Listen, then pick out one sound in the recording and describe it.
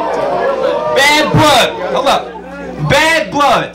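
A crowd cheers and shouts in bursts.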